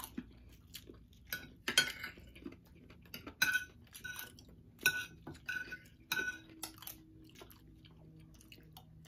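A man and a woman chew loudly close up.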